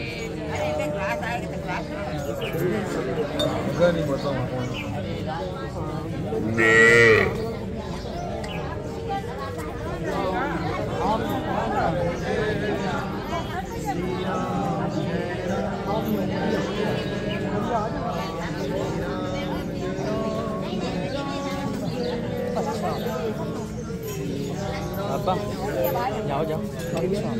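A crowd of men and women talk over one another close by, outdoors.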